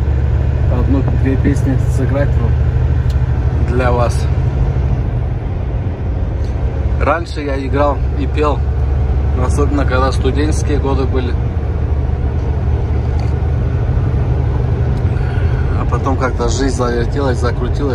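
A truck engine rumbles steadily while driving along a road.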